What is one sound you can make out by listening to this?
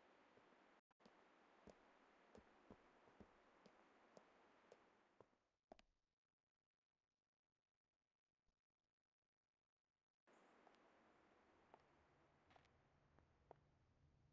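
Footsteps tap lightly on a hard surface.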